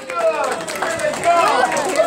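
A young boy claps his hands.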